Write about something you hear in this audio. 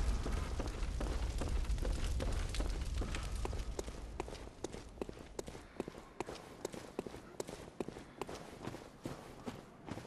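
Footsteps tap steadily on wood and stone.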